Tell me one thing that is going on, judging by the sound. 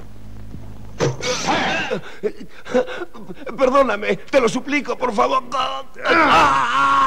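A man speaks tensely up close.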